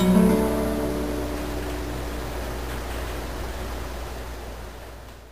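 An acoustic guitar is strummed close by, and its chords ring out and slowly fade.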